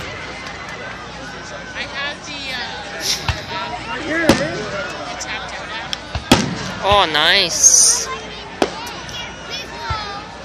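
Fireworks bang and crackle in the distance.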